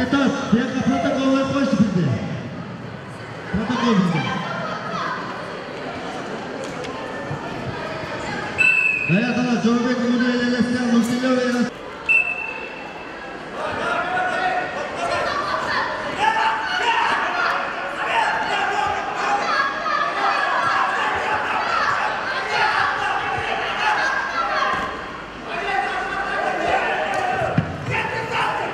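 Spectators shout and cheer loudly in a large echoing hall.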